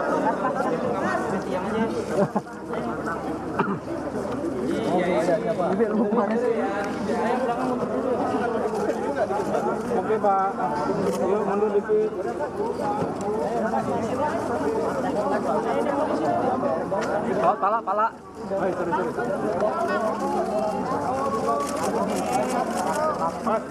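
A crowd of men talk and call out outdoors.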